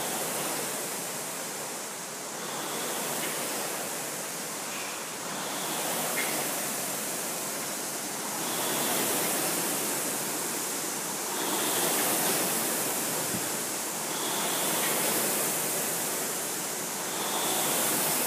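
Rowing machine flywheels whir in rhythmic surges.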